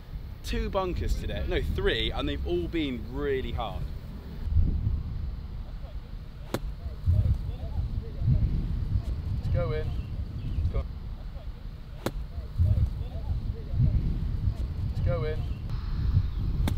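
Wind blusters across an outdoor microphone.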